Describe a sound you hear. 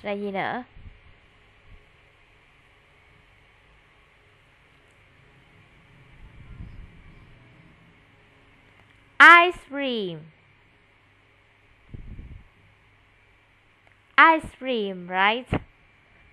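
A woman speaks brightly and slowly, heard over an online call.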